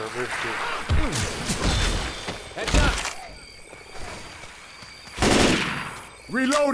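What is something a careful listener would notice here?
A rifle fires a few loud shots.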